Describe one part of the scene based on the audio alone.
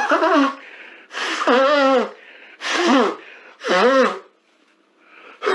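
A man sobs and wails loudly up close, in repeated bursts.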